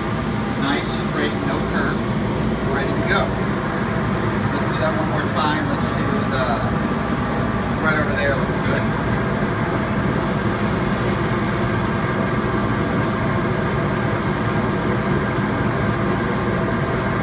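A machine's fans hum steadily.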